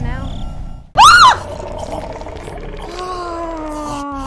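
A young woman laughs loudly into a close microphone.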